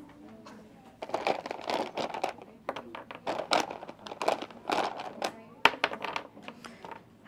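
Wooden blocks clack and knock on a table.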